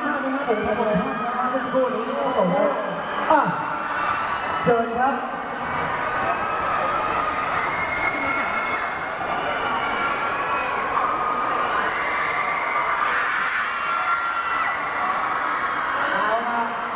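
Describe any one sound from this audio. A woman speaks through a microphone over loudspeakers.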